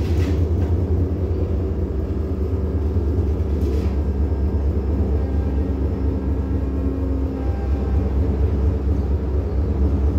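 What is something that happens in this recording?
A truck engine revs as the truck pulls forward slowly.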